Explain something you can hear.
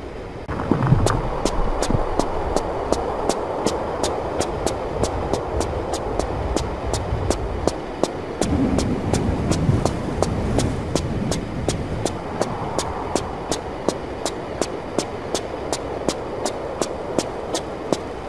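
Pistols fire in rapid, steady bursts of sharp shots.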